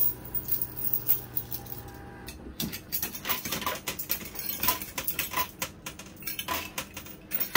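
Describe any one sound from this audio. Coins clink and clatter in a coin pusher machine.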